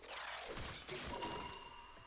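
A blade swishes through the air in a quick slash.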